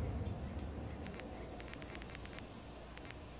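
Soft menu clicks tick in quick succession.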